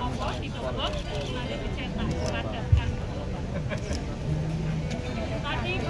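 Plastic packaging crinkles in a man's hands.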